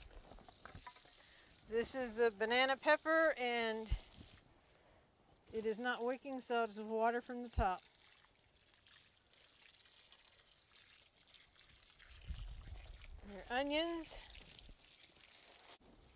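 Water from a garden hose splashes onto plants.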